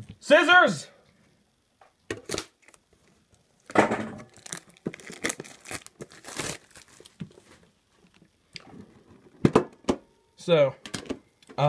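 Plastic wrap crinkles and rustles as it is peeled off a tin.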